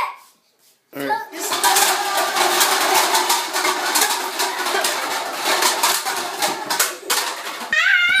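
Plastic cups clatter and tumble down in a long rattling crash.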